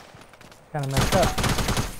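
Rapid gunshots fire close by.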